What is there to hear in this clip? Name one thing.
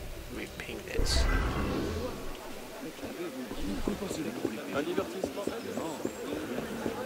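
A crowd of people murmurs and calls out nearby.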